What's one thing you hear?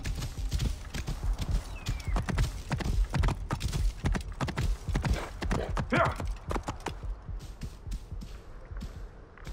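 Horse hooves clop steadily on rocky ground.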